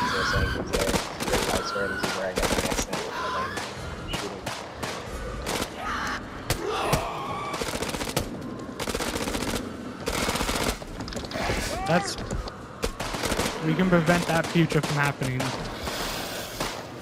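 Rifles fire in rapid, loud bursts.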